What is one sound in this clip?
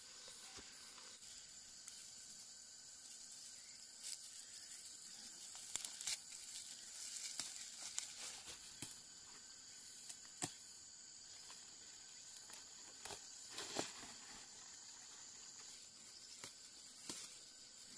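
Dry fern fronds rustle and crackle as they are pulled.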